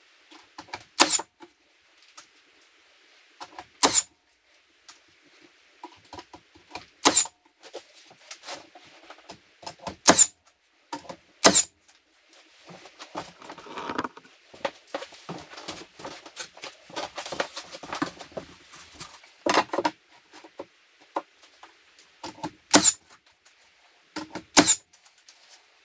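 A nail gun fires with sharp snaps into wood.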